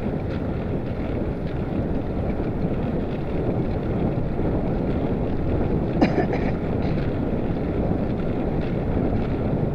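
Wind rumbles steadily against the microphone.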